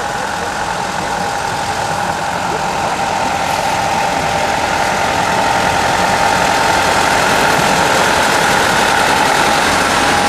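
A small diesel locomotive approaches, its engine growing louder.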